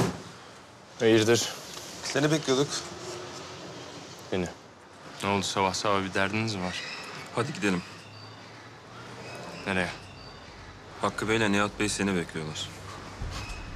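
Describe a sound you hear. A man speaks tensely at close range.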